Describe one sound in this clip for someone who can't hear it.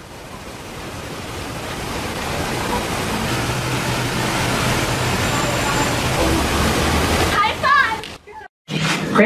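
A fountain splashes steadily outdoors.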